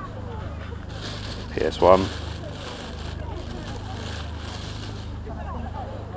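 A plastic bag rustles and crinkles in hands.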